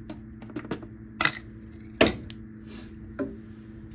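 A spoon clinks against a metal bowl.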